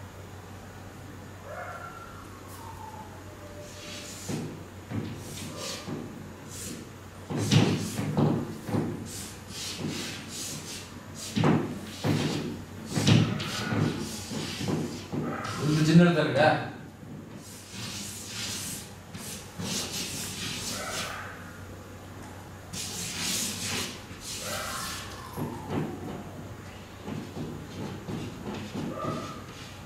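A man speaks with feeling, his voice echoing in a large hall.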